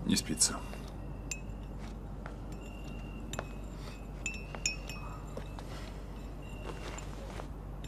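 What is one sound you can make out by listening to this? A spoon clinks as it stirs in a cup.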